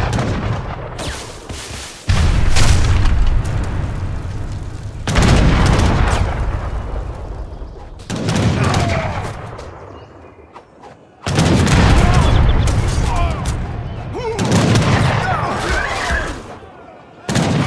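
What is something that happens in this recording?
Cannons fire with loud booming blasts.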